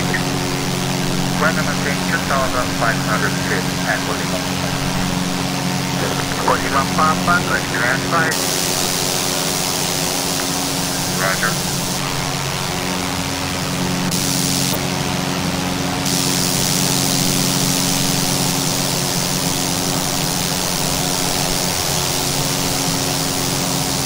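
A propeller engine drones steadily and evenly.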